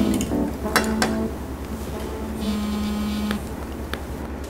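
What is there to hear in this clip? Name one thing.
A phone rings briefly.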